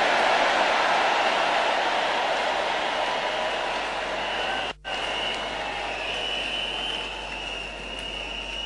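A man preaches loudly and with passion.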